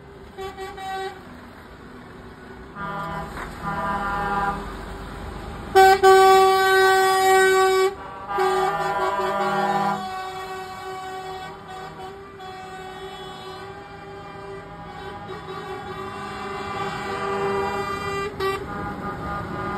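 Heavy truck engines rumble as a convoy of trucks rolls slowly past.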